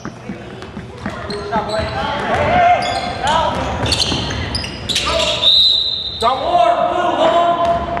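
Sneakers squeak sharply on a wooden gym floor.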